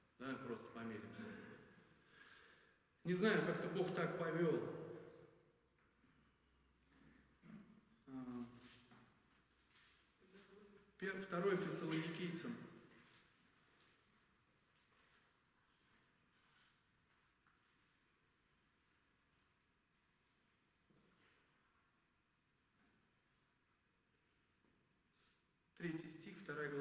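A man speaks through a microphone in an echoing room, with long pauses between phrases.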